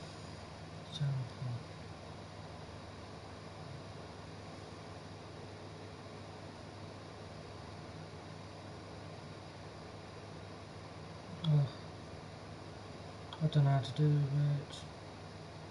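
A man speaks briefly in short bursts, close to a microphone.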